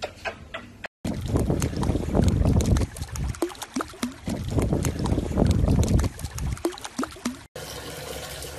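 Water splashes as a small dog paddles.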